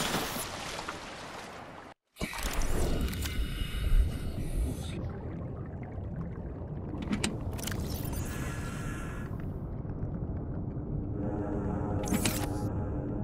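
Water rumbles and bubbles in a low, steady wash.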